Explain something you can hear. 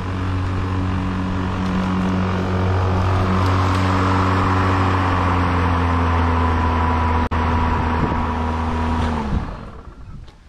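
A lawn mower engine runs loudly, then winds down and stops.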